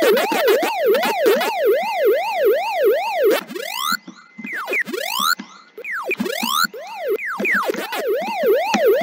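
An electronic arcade game siren wails up and down in a fast, steady rhythm.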